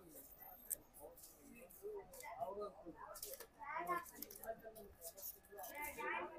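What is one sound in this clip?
Aluminium foil crinkles as a lid is peeled off a tray.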